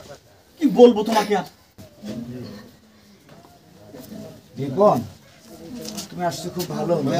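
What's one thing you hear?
A man speaks in reply close by.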